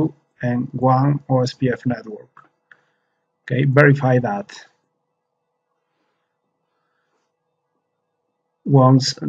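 A man talks calmly into a close microphone, with short pauses.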